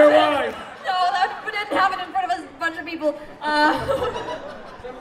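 A young woman speaks with animation into a microphone over loudspeakers.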